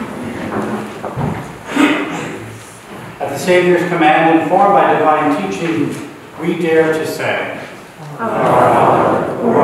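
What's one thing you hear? A middle-aged man chants in a slow, sung voice in an echoing room.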